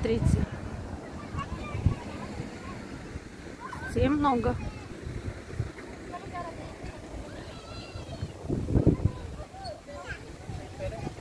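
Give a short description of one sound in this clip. Children shout and call out at a distance outdoors.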